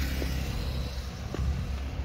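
A motorcycle rides by on the street.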